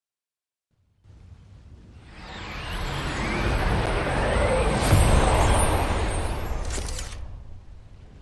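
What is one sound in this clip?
A magical shimmering whoosh swells up and slowly fades.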